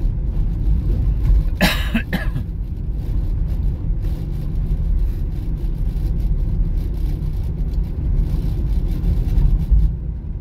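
A car engine hums steadily with low road rumble from inside the car.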